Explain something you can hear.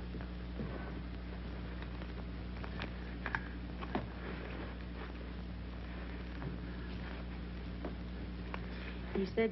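Clothing rustles softly.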